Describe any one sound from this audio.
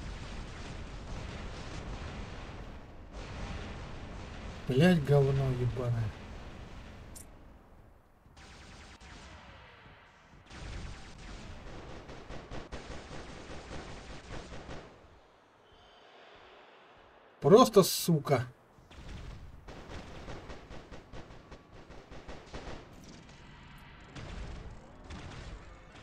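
Game guns fire in rapid bursts.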